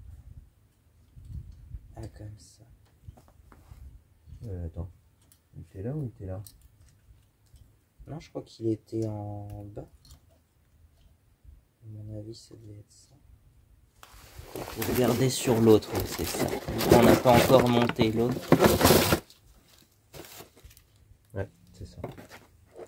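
Metal parts clink and click under a man's hands.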